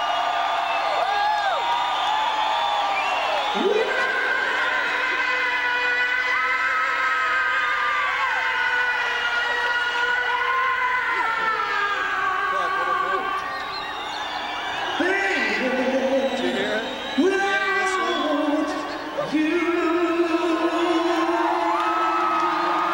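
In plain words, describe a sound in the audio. A live rock band plays loudly outdoors.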